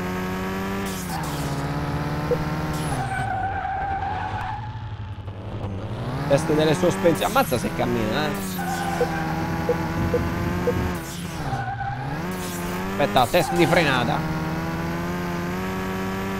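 A car engine revs up and down, shifting through gears.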